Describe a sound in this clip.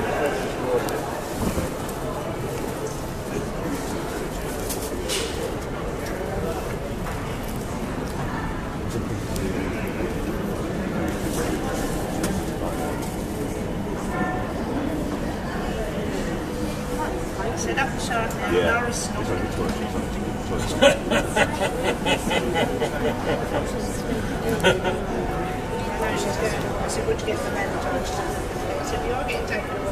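A crowd of adults chatters softly nearby indoors.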